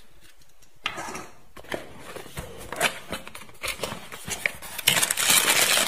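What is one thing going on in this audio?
A cardboard box flap is pulled open.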